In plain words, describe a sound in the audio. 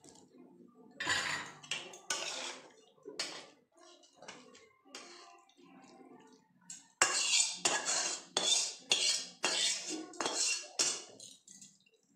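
A metal spatula scrapes food from a steel wok into a steel bowl.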